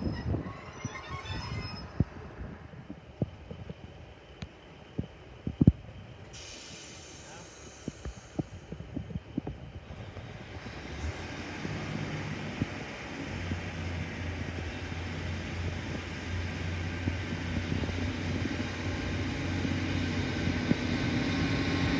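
A diesel train rumbles closer along the track and grows louder.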